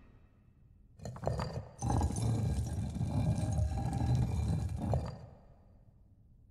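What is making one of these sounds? A metal scepter grinds and scrapes as it is twisted free from a stone hand.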